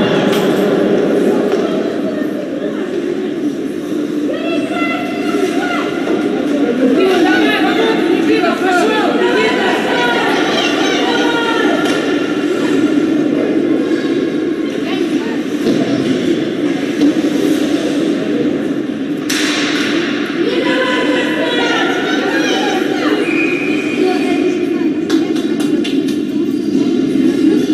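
A crowd of spectators shouts and cheers in a large echoing arena.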